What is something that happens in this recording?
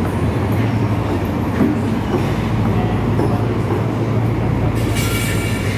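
Young people chat quietly nearby.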